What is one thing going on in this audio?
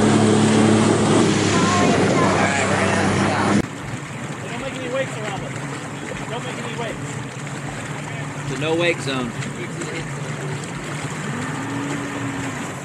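Water rushes and splashes against a hull.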